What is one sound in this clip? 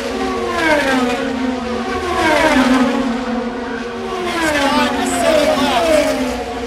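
IndyCar race cars with twin-turbo V6 engines scream past at full speed, each engine's pitch dropping as it passes.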